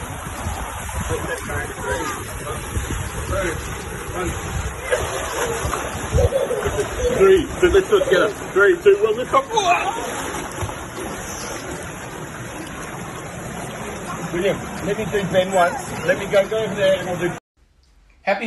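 Water churns and splashes in a small pool.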